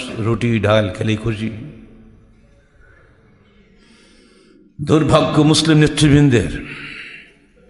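An elderly man speaks with emphasis into a microphone, with pauses.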